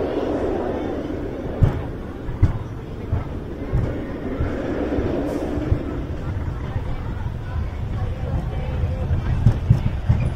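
A roller coaster train rumbles along steel rails.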